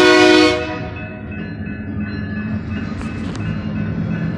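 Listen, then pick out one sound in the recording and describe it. A train rumbles closer.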